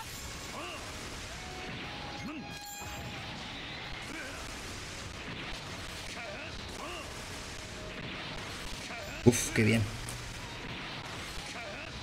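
Game sound effects chime and whoosh over quiet background music.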